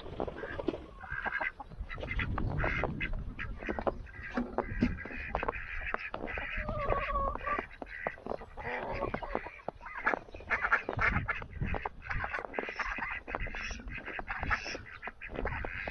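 Ducks quack.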